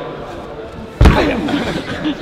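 A climber drops onto a padded mat with a heavy thud.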